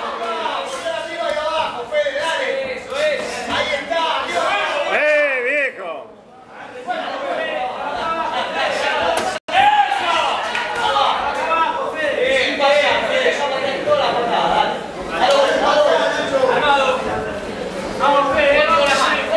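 Men in a crowd shout and cheer loudly nearby.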